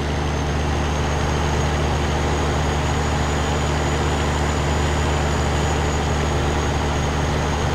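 A truck engine drones steadily as it drives along.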